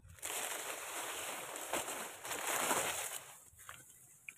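Dry palm fronds rustle and brush together close by.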